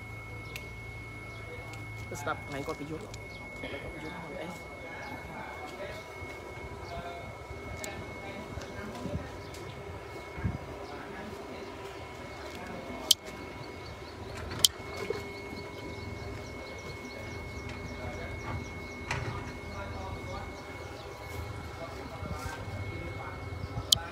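A group of men talk at a distance outdoors.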